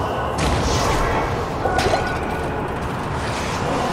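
A magic portal hums steadily.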